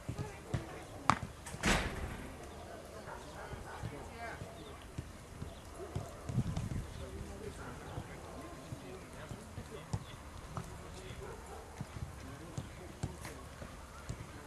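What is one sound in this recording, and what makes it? Footsteps of several men jog softly on grass.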